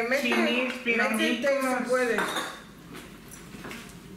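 A serving utensil clinks against a plate.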